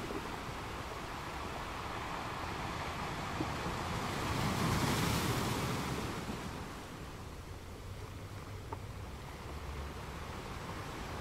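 Ocean waves roll in and crash steadily against rocks, swelling loudest midway and then easing off.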